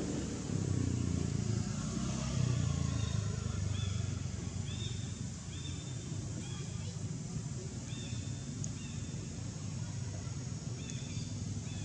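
A baby monkey squeaks softly and repeatedly.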